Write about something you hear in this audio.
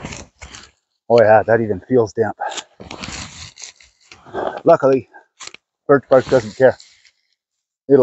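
Birch bark crackles and tears as it is peeled.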